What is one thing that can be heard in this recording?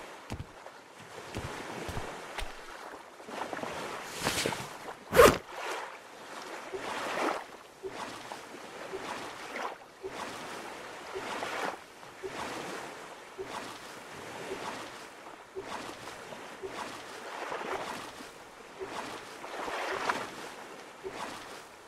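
Calm sea water laps gently.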